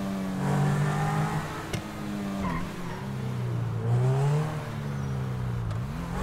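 A sports car engine roars steadily, its pitch rising and falling as the car speeds along.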